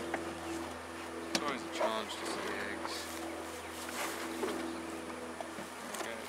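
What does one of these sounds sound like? Wooden hive frames knock and scrape now and then.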